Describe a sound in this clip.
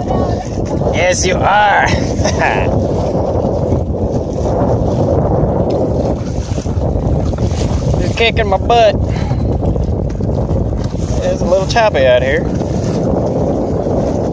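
Wind blows roughly across open water.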